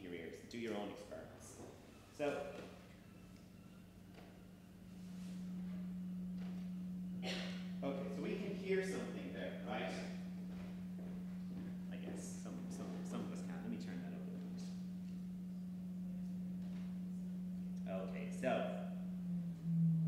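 A young man speaks calmly to an audience in an echoing hall.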